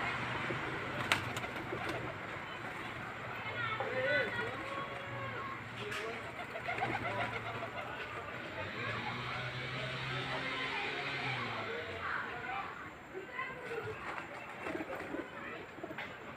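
Pigeons coo softly nearby.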